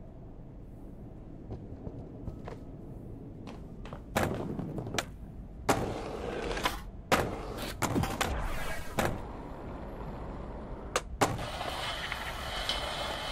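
Skateboard wheels roll and clatter over hard ground.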